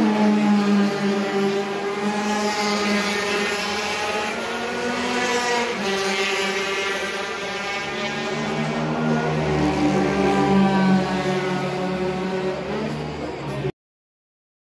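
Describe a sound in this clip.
Racing car engines roar loudly, rising and falling in pitch as the cars speed past.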